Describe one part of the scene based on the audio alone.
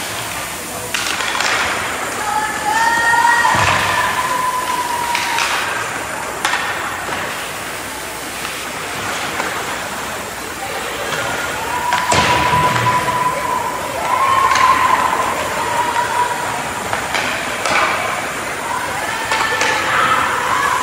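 Hockey sticks clack sharply against a puck now and then.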